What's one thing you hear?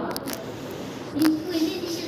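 A boy's footsteps pat on a tiled floor.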